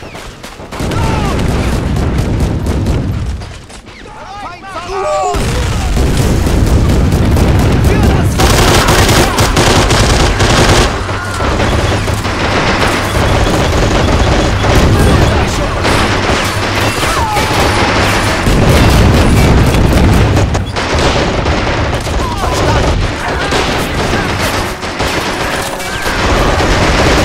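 Gunfire and explosions crack and rumble in a battle.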